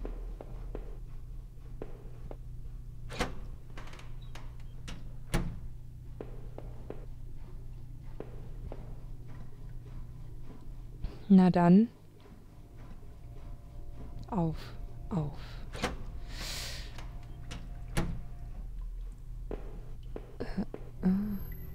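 Footsteps tap softly and steadily.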